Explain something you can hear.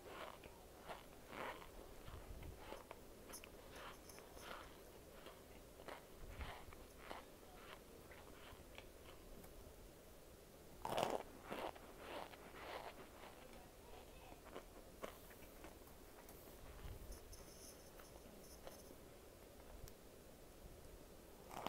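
A young woman chews soft food with wet, smacking sounds close to the microphone.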